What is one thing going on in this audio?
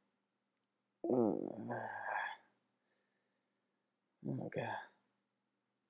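A young man speaks drowsily, close by.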